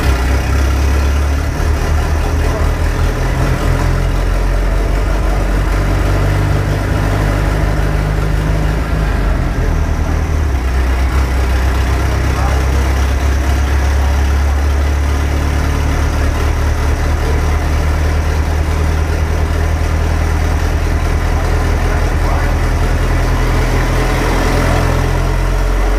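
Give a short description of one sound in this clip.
A car engine runs loudly and revs up and down.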